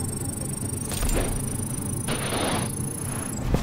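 A short electronic game sound effect whooshes and chimes.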